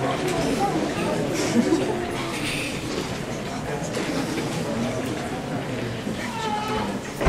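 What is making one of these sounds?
A crowd of young people and an audience chatter in a large hall.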